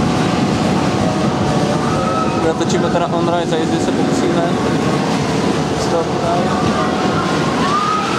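A roller coaster train roars along a steel track.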